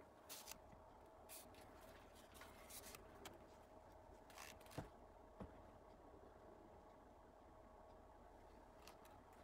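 Hands rustle and shuffle while handling a rifle.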